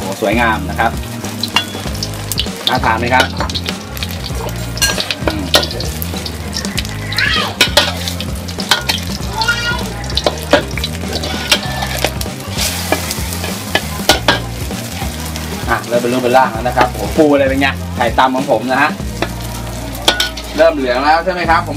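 Eggs sizzle in a hot pan.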